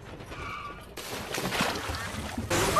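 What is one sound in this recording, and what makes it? Water splashes around a car.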